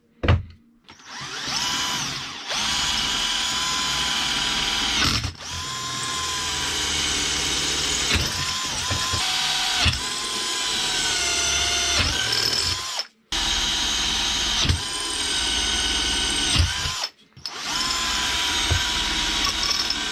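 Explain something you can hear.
A cordless drill whines loudly as it drives screws into wood.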